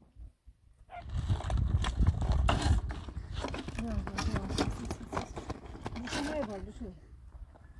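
A loaded wheelbarrow rumbles and rattles over rough ground.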